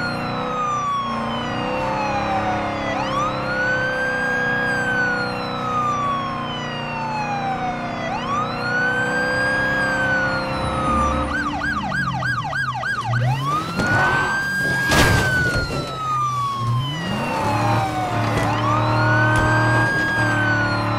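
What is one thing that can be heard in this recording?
A police siren wails, rising and falling in a slow cycle.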